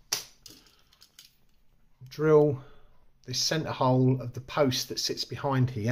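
A small plastic toy car clicks as fingers turn it over.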